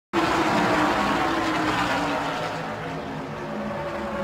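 A race car engine idles with a deep, steady rumble.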